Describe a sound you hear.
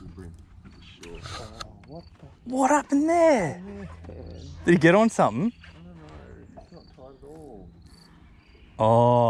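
A man talks with excitement close by.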